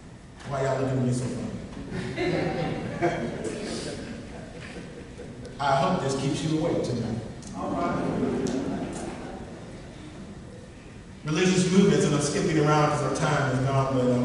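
A man speaks steadily into a microphone over loudspeakers in an echoing room.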